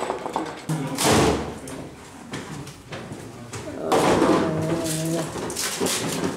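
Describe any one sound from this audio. A metal keg clunks against a hand truck.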